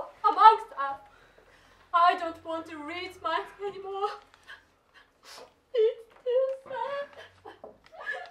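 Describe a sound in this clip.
A young woman sings with emotion.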